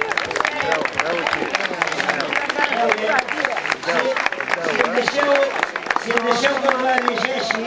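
People clap their hands.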